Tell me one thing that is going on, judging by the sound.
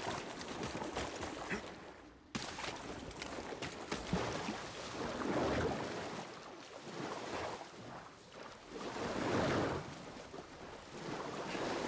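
Water splashes as a figure wades and swims.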